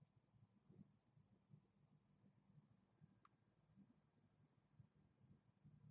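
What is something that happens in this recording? A hummingbird's wings hum as it hovers.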